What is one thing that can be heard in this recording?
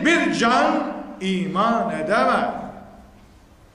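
An elderly man speaks loudly into a microphone, his voice heard through a loudspeaker.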